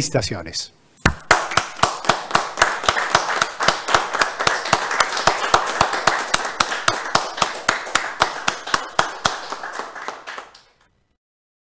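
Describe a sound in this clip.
Two men clap their hands in a steady rhythm.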